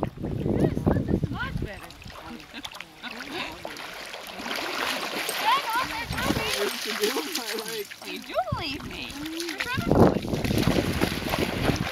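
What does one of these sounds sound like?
Water splashes as a dog runs and paddles through shallow water.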